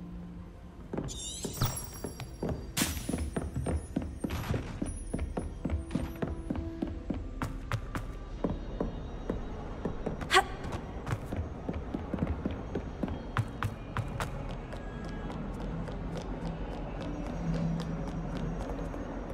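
Quick footsteps run across a hard stone floor.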